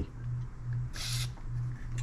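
An aerosol can hisses briefly as it sprays.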